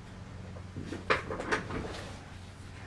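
Fingers tap and rub on a work surface.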